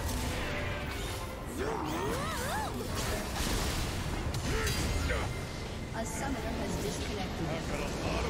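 Video game spell effects whoosh and crackle in a fast fight.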